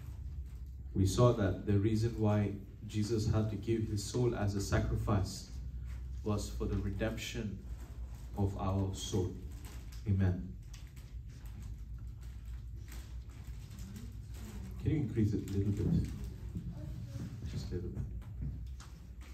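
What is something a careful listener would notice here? A man speaks calmly into a microphone, heard through a loudspeaker in a room.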